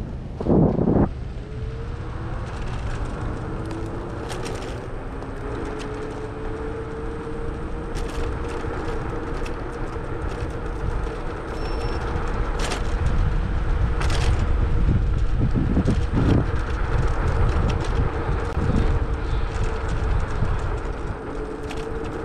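Wind rushes past loudly, rumbling low.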